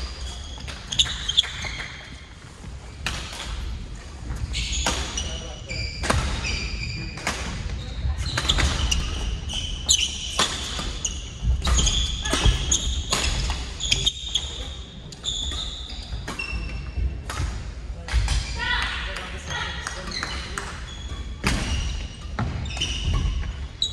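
Shuttlecocks pop off badminton rackets in a large echoing hall.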